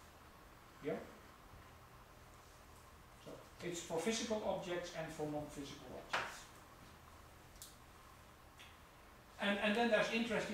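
An adult speaker lectures calmly, heard through a microphone.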